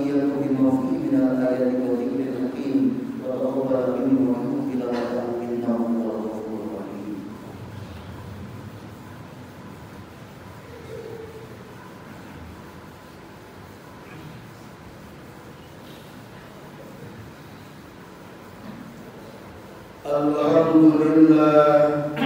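An elderly man speaks slowly and solemnly through a microphone in an echoing hall.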